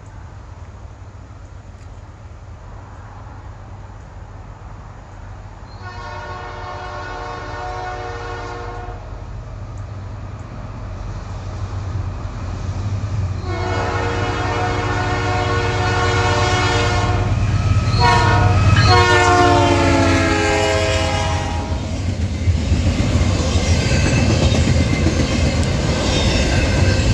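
A diesel locomotive engine rumbles, growing louder as it nears.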